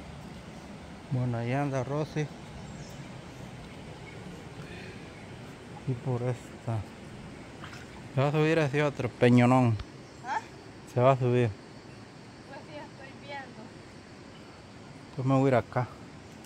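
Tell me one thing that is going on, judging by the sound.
Feet splash softly as a person wades through shallow water.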